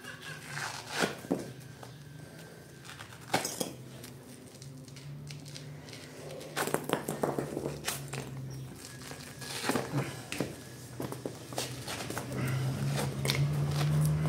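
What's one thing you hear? Chunks of dried clay clatter onto a stone floor.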